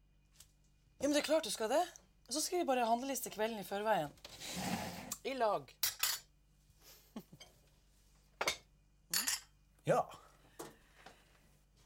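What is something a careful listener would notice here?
A man speaks softly and calmly close by.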